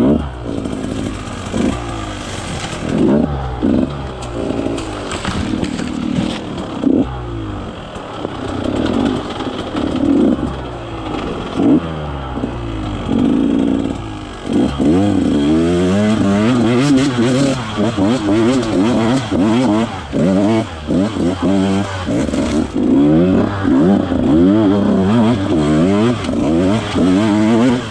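Tyres crunch over dry leaves and rocks.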